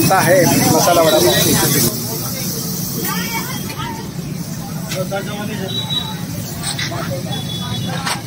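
Butter sizzles on a hot griddle.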